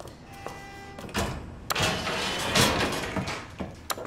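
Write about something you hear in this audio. A metal elevator gate rattles and clanks.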